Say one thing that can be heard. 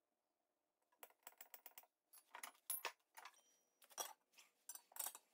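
A metal tube clinks and taps as it is handled.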